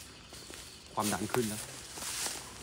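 A man speaks close by in a hushed, tense voice.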